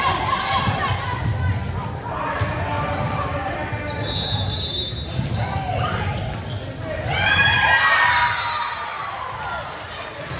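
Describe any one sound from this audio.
Young women shout and call out to each other in a large echoing gym.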